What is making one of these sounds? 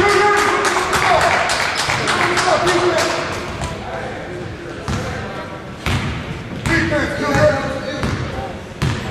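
A man shouts from the sideline.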